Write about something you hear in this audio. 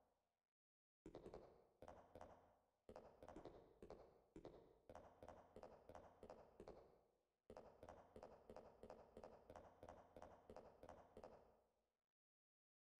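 Footsteps echo steadily on a hard floor.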